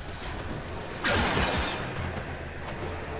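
A blade swooshes through the air.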